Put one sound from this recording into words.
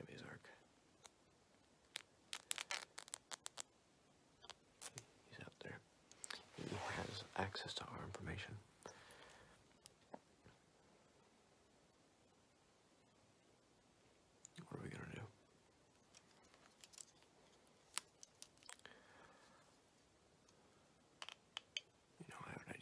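A pen taps and clicks close to a microphone.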